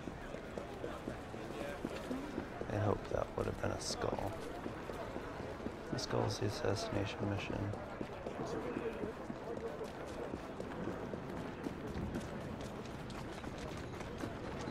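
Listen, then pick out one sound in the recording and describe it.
Footsteps run over cobblestones.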